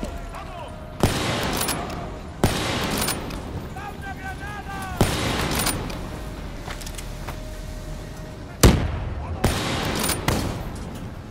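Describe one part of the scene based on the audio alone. A rifle fires loud single shots that echo.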